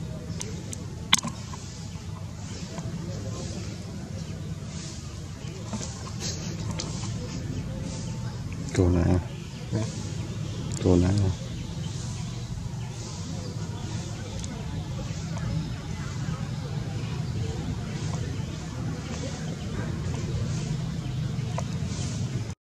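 A baby monkey suckles milk from a bottle.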